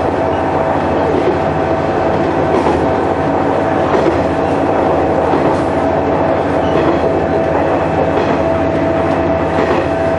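A train engine drones steadily from inside the cab.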